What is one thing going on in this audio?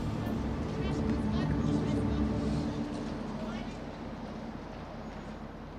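A steam locomotive rumbles low and steady.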